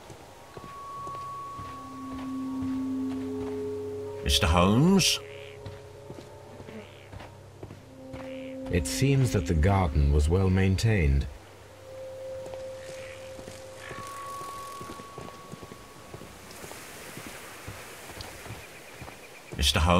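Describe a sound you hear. Footsteps crunch along a path.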